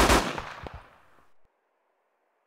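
A rifle shot cracks and echoes away.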